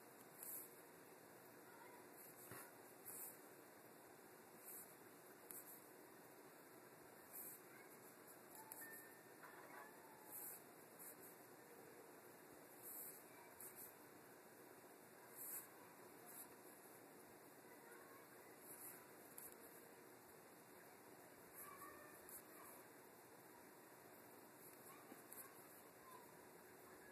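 A small brush taps and scrapes lightly on glass.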